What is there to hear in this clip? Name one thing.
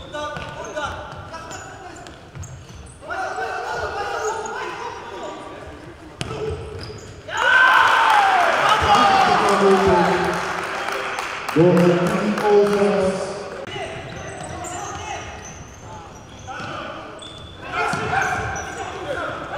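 A ball thuds as it is kicked across a hard indoor court.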